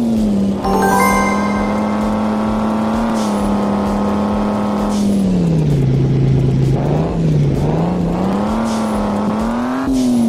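A racing car engine drones steadily, dropping lower and then rising again in pitch.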